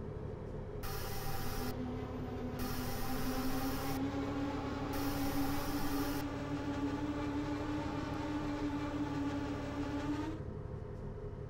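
A train engine hums inside the cab, its whine slowly rising as the train picks up speed.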